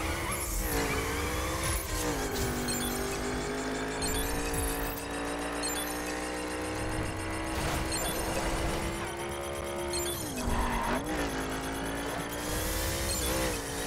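A racing car engine roars at high revs, its pitch dropping and rising with gear changes.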